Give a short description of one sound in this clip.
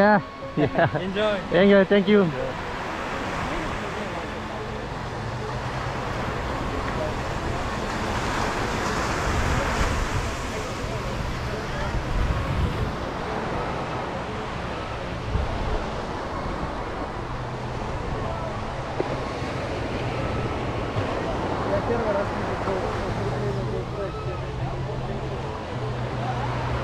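Waves wash steadily onto the shore nearby.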